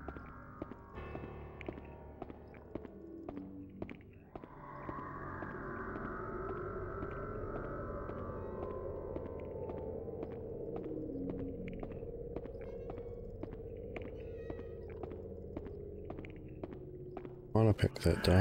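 Footsteps tap on a stone floor in an echoing corridor.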